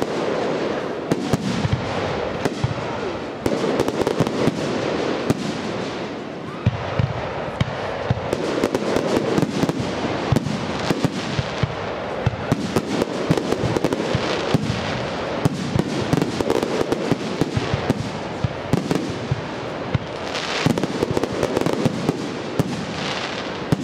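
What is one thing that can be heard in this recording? Fireworks boom and bang in rapid bursts.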